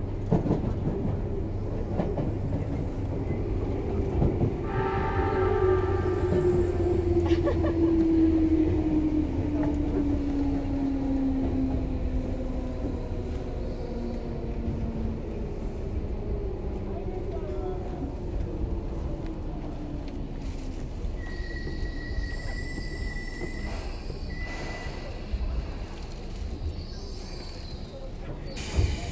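A train rumbles along the tracks close by.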